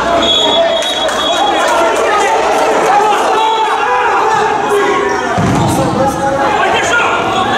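Players shout to each other across the hall.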